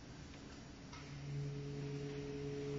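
A clarinet plays a low, held note that swells louder.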